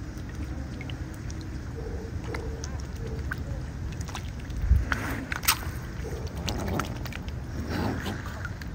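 A swan dabbles its bill in the water with soft splashes and slurps.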